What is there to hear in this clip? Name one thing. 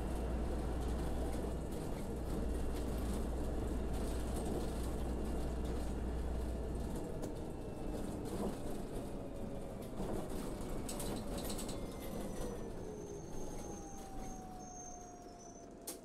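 A bus engine drones and winds down as the bus slows to a stop.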